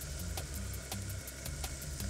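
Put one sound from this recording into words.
Oil pours into a sizzling pan.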